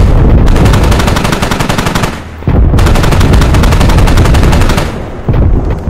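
A heavy gun fires in rapid, rattling bursts.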